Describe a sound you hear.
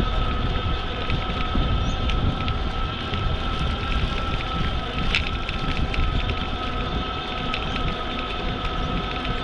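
Bicycle tyres hum steadily on smooth pavement.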